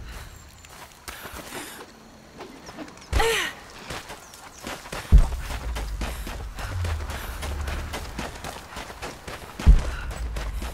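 Quick footsteps run over grass and stone.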